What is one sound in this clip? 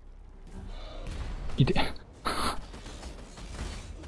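A deep magical blast booms out once.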